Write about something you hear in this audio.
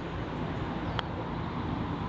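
A putter taps a golf ball with a soft click.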